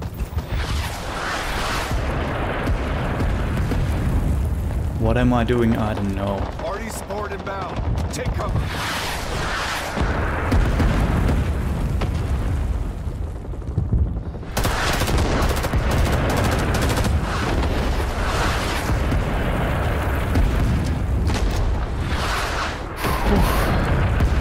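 Footsteps thud on hard ground.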